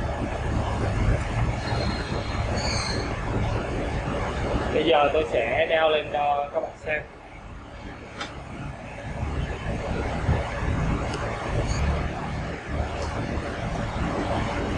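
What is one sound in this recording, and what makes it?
Plastic straps and a plastic tank clatter as a man handles them.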